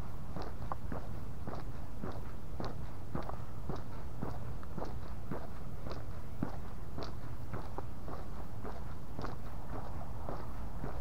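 Small wheels roll over rough pavement with a steady low rumble and rhythmic clacks.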